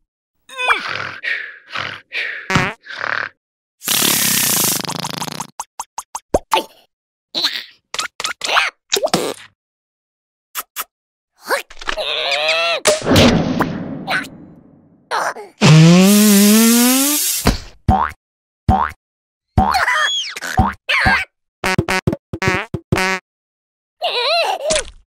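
A small cartoon creature squeaks and babbles in a high, silly voice.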